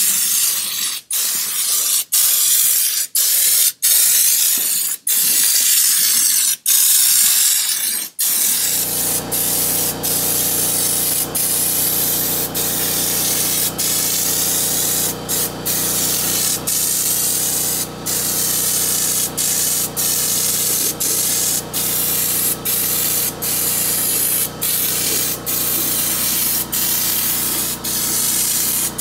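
A compressed-air spray gun hisses in short bursts, spraying bedliner coating onto a car body.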